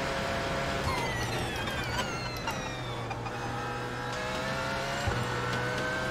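Gears shift with sharp clicks.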